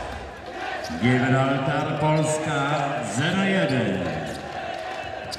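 A crowd of fans chants loudly in unison.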